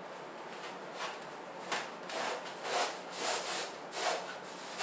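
Stiff paper crinkles and rustles loudly.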